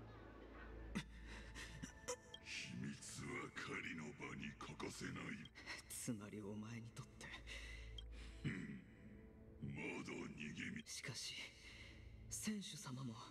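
A young man speaks calmly and close.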